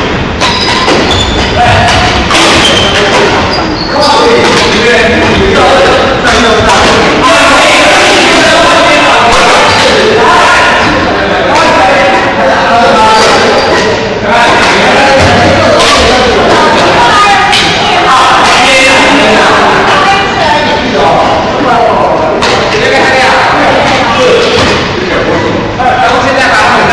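Many players talk and call out across a large echoing hall.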